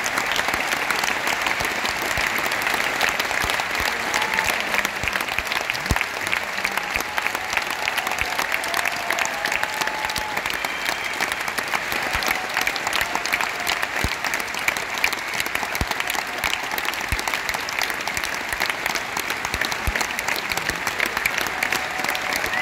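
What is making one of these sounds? A large band of drummers plays a rapid, steady snare drum roll in a large echoing arena.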